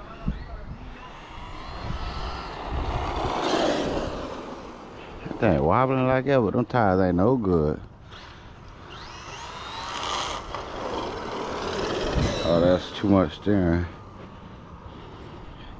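A toy car's electric motor whines and revs as it speeds along a road.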